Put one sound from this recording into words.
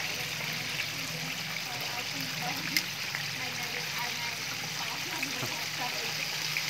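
Food sizzles and crackles in hot oil.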